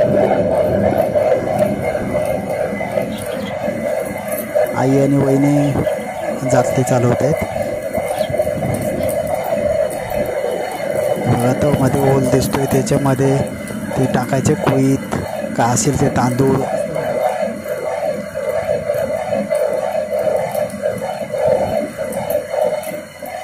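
A stone hand mill grinds grain with a steady, rough rumbling.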